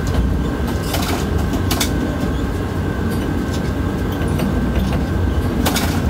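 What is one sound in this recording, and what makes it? Metal clanks and rattles as a crane's spreader rises.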